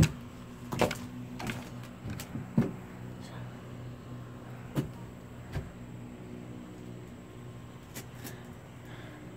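Footsteps knock on wooden boards outdoors.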